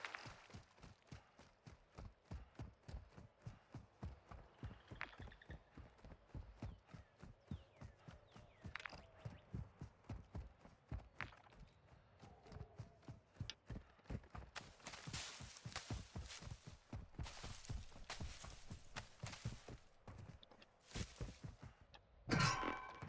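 Footsteps thud quickly on grass and dirt.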